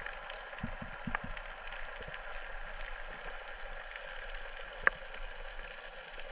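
A steady muffled underwater hiss carries scattered faint crackling clicks.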